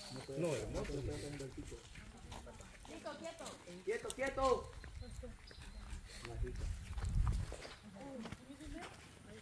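Young women talk and laugh nearby, outdoors.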